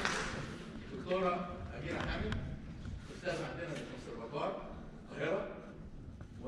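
A string orchestra plays in a large echoing hall.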